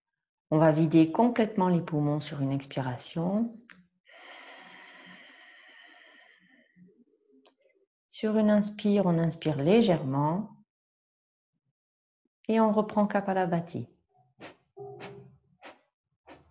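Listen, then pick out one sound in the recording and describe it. A middle-aged woman speaks calmly and slowly, close to a microphone, with pauses.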